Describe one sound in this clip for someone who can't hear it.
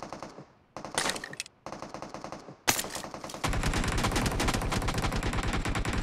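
A gun clicks and rattles as it is picked up.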